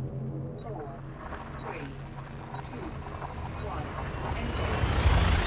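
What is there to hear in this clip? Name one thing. A spaceship engine rumbles deeply and swells louder as it charges up.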